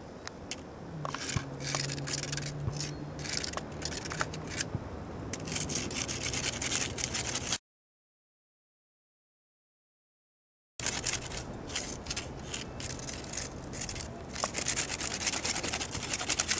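Sticks scrape and crackle close by.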